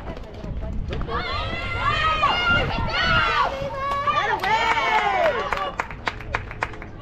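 Young women cheer and shout excitedly nearby.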